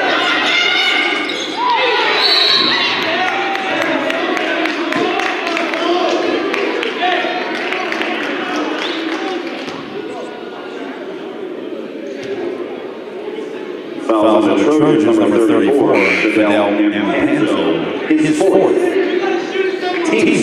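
Players and spectators shout and chatter, echoing in the gym.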